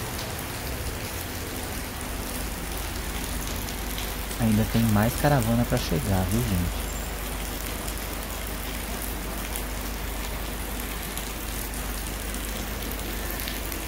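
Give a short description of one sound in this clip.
Rain patters steadily on wet pavement outdoors.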